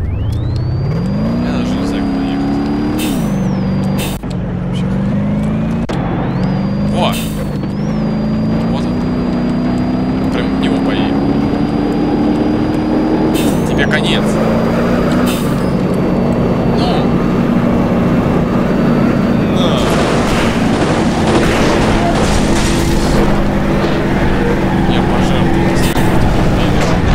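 A car engine revs and roars, rising and falling as it shifts gears.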